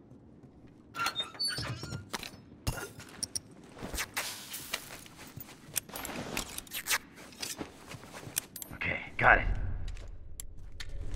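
Quick rustling and clicking sounds come in bursts as items are put together.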